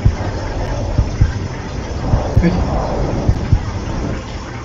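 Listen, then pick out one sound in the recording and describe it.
Deep heavy thuds boom amid a low rumble.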